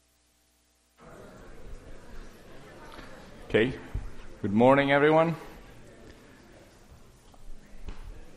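A man speaks aloud through a microphone in a large room.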